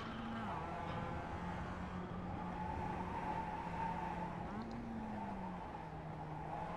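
A race car engine drones steadily, shifting pitch as gears change.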